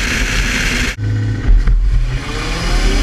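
A car engine idles close by.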